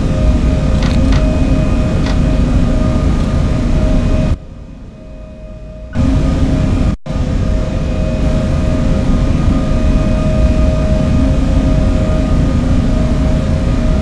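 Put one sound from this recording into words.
A train's electric motor hums steadily as it runs along the track.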